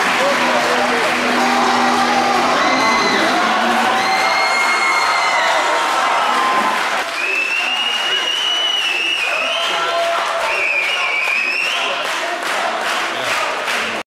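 Music with a singing voice plays through a loudspeaker in a large echoing hall.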